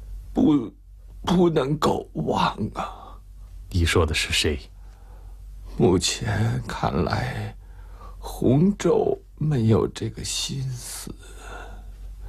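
A middle-aged man speaks.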